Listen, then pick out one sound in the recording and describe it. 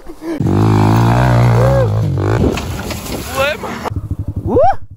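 A motorcycle engine revs loudly up and down.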